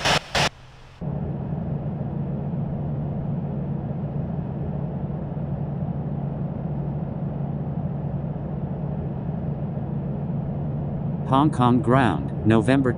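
Jet engines hum steadily.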